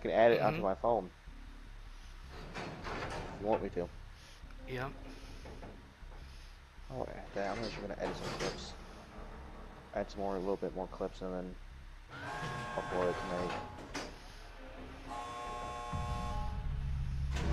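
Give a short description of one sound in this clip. A generator clanks and rattles as it is being repaired.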